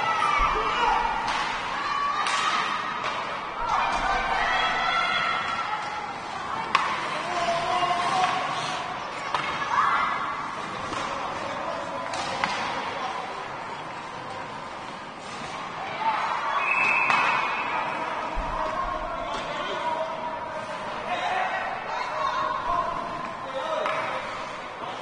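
Skates scrape on ice.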